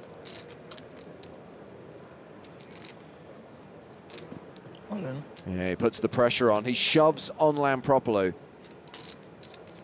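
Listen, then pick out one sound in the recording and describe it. Poker chips click together.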